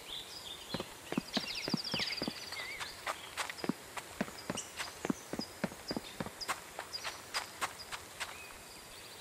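Footsteps tread steadily on a paved road.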